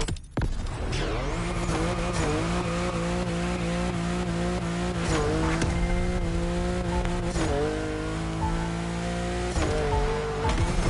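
A car engine roars loudly, revving up through the gears with brief dips at each shift.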